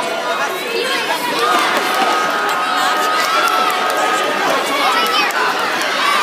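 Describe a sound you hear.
A large crowd of men and women chatters and calls out in a big echoing hall.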